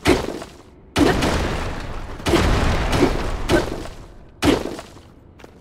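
Rock chunks crumble and clatter down.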